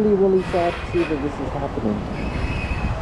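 Men talk in the distance.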